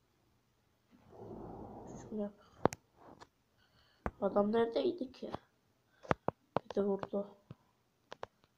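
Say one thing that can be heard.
A boy talks close to a microphone, with animation.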